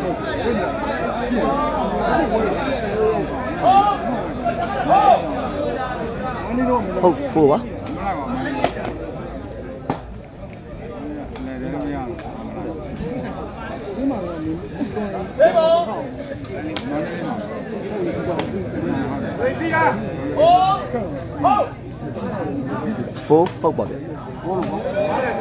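A large outdoor crowd chatters and shouts throughout.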